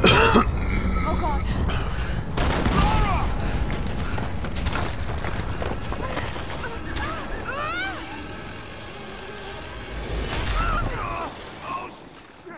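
A loud rumble of an avalanche roars and crashes.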